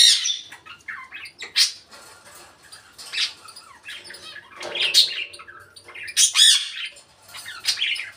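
A parrot squawks, chirps and whistles close by.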